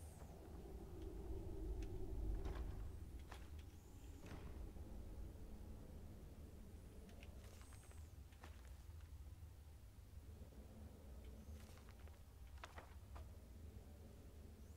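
A magic flame crackles and hums softly.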